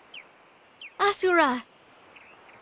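A young woman calls out loudly and urgently.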